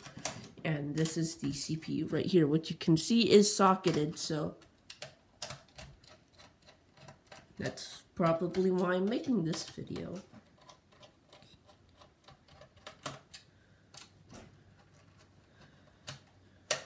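Small plastic and metal parts click and tap as they are handled.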